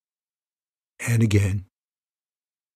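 An older man speaks briefly and calmly, close to a microphone.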